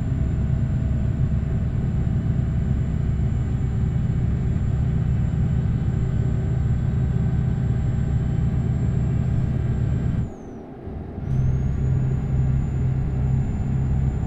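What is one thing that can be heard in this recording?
A heavy truck engine drones steadily, cutting out briefly for a moment before returning.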